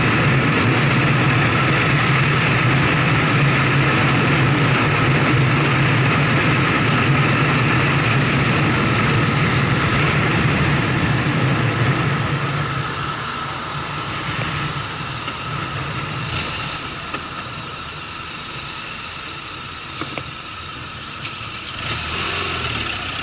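A motorcycle engine drones steadily, then quietens as the motorcycle slows.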